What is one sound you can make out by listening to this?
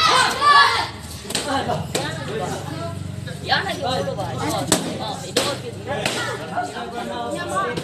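Young people talk and call out nearby, with some shouting.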